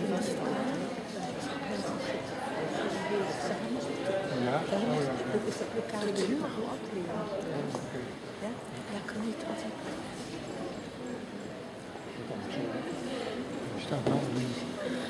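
A group of young women murmur and chat in a large echoing hall.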